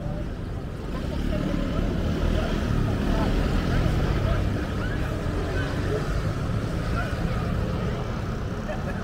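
A motor scooter drives past close by with a buzzing engine.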